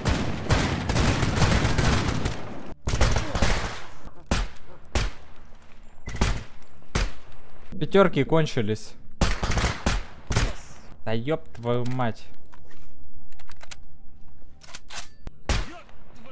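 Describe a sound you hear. Rifle shots ring out in sharp bursts with echoing tails.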